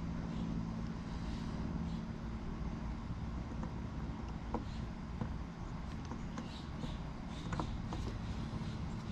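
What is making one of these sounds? Wooden puzzle pieces click and knock together as they are fitted by hand.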